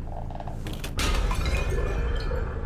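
Glass cracks and shatters sharply.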